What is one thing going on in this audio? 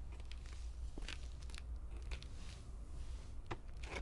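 Footsteps tap slowly on hard pavement.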